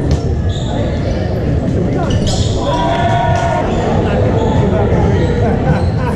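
Many voices chatter and call out in a large echoing gym.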